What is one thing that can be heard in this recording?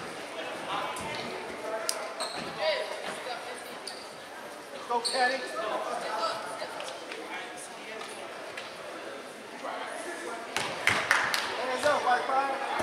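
A crowd of spectators chatters nearby in a large echoing gym.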